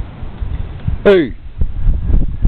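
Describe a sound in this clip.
A dog gives a short, high yelp.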